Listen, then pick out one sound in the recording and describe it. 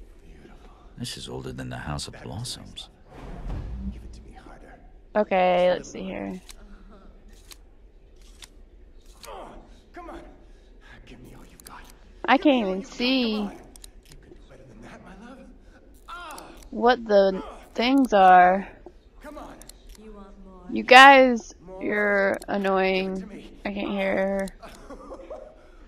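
A young woman speaks into a microphone close by.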